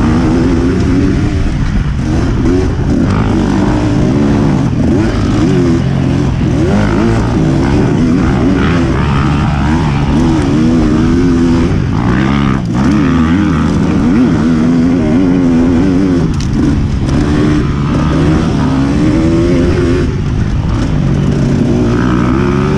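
A dirt bike engine revs up and down loudly close by.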